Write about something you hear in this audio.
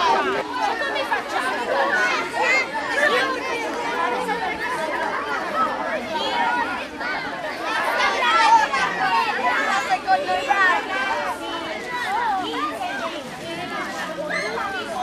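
A crowd of children and teenagers chatter and call out loudly outdoors.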